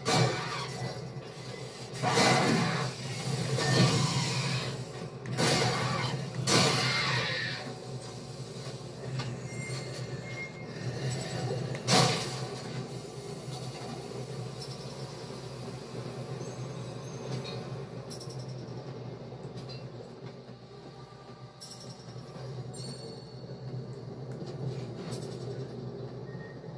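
Gunfire and explosions from a video game play through a television speaker.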